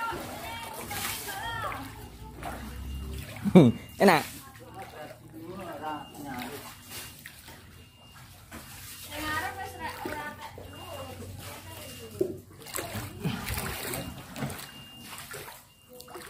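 Shallow floodwater sloshes against a plastic boat.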